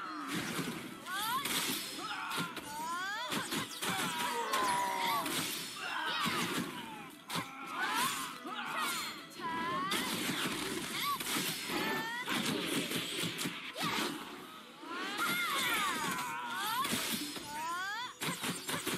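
Swords clash and strike hard in quick bursts.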